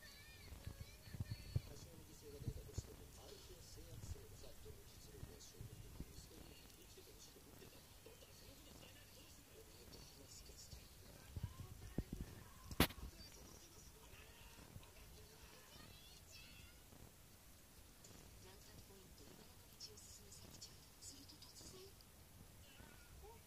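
A cat licks another cat's fur with soft, wet rasping sounds, close by.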